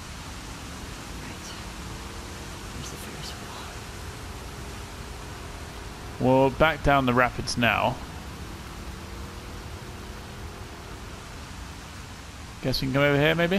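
A small outboard motor hums steadily.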